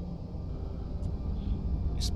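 A hand pats softly against clothing.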